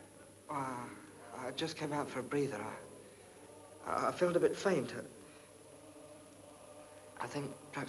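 A young man speaks in a troubled, halting voice close by.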